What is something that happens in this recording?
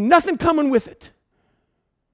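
A man speaks through a microphone with animation.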